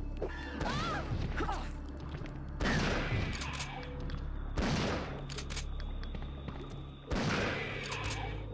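Gunshots fire and ring out loudly.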